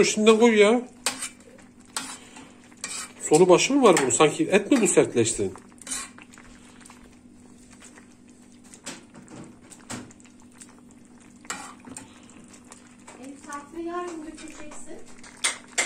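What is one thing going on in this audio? Thick sauce squelches as it is mashed.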